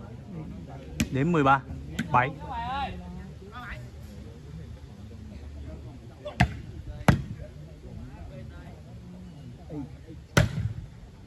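A ball is struck with sharp slaps outdoors.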